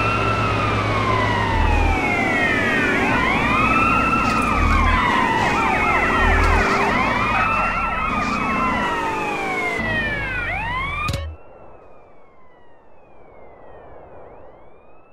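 A police siren wails and sweeps up and down close by.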